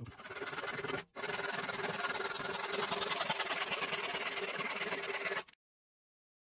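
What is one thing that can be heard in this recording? A hand saw cuts through wood with quick strokes.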